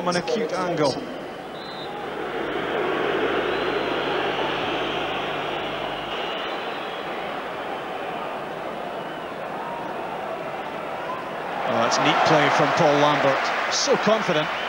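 A large stadium crowd murmurs and cheers in the distance.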